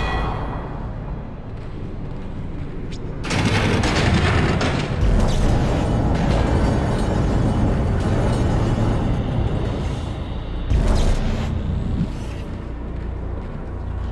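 A low mechanical rumble drones steadily.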